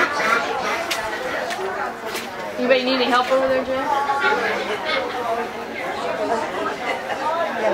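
A crowd of men and women chat and murmur nearby.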